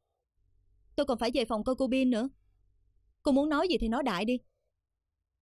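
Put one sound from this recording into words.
A second young woman answers calmly.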